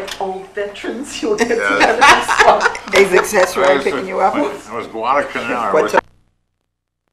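Several women laugh heartily together.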